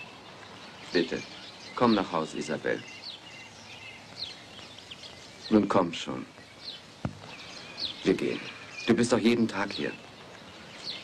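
A man speaks urgently, close by, in short bursts.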